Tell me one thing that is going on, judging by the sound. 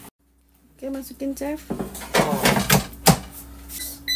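A plastic basket slides into an appliance with a clunk.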